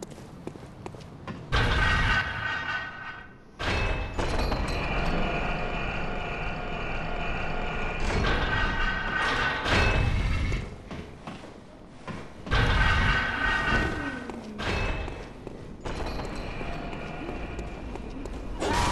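Footsteps tread on a stone floor.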